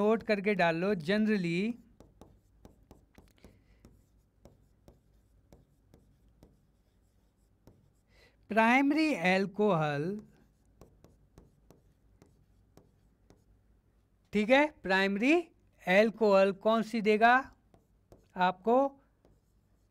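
A marker squeaks and taps on a board.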